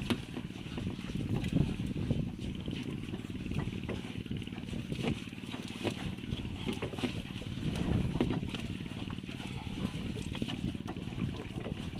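A boat engine idles with a steady low rumble.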